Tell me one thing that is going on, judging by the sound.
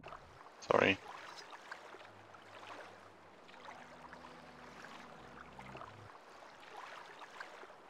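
Gentle water laps softly outdoors.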